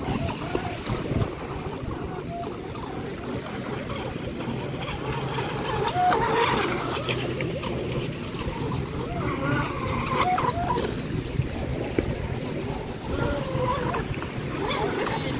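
Small waves lap and splash at the water's edge.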